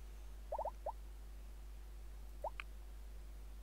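Short rising electronic menu blips chirp.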